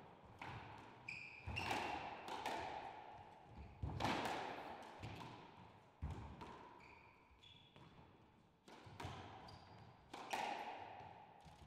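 Quick footsteps thud on a wooden floor.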